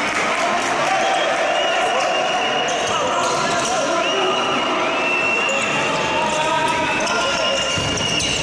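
A small crowd of spectators calls out in an echoing hall.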